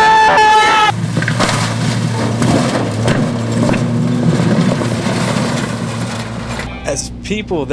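A pickup truck engine roars as it drives by.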